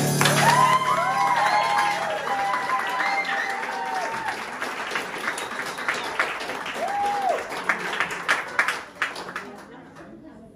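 A drummer plays a drum kit with crashing cymbals.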